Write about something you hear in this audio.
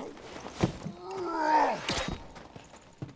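A creature cries out in pain.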